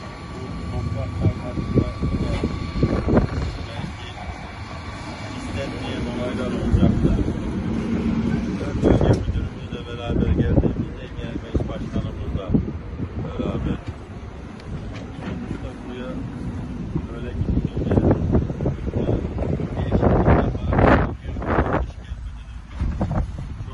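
A middle-aged man speaks with animation close by, outdoors.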